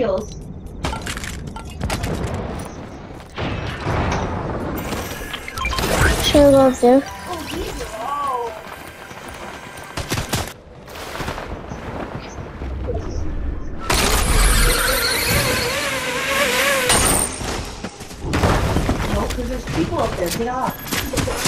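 Video game sound effects play, with bursts of clattering and whooshing.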